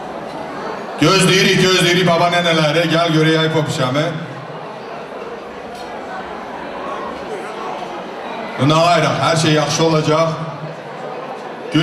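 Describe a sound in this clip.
A man sings loudly through a microphone and loudspeakers in a large echoing hall.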